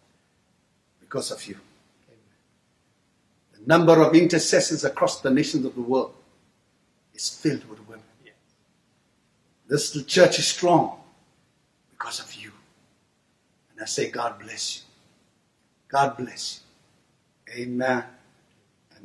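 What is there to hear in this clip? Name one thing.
A middle-aged man speaks slowly and solemnly through a microphone, with pauses between phrases.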